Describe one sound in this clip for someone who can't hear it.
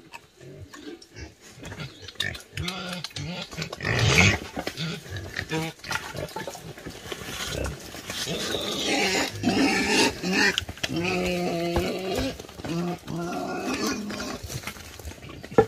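Pigs grunt and squeal close by.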